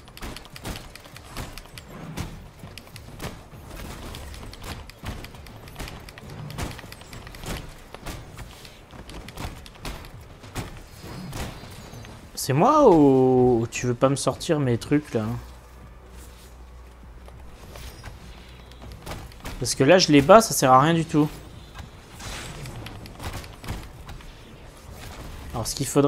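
Metallic punches and blasts thud and crackle in a fast fight.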